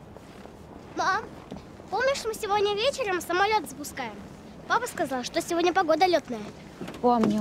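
A young child asks a question in a high, eager voice.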